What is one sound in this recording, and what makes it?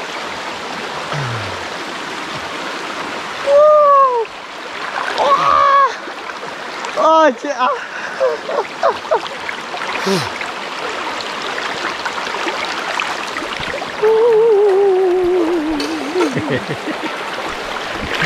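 Water rushes steadily over rocks in a shallow stream.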